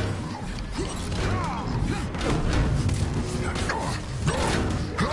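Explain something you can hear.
A low whooshing rumble swells and rolls.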